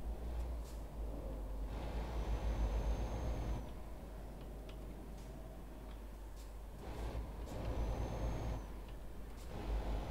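A truck engine rumbles steadily, swelling and easing as it drives.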